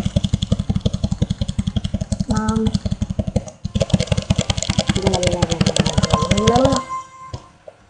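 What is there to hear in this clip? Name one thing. Fast, pulsing electronic game music plays loudly.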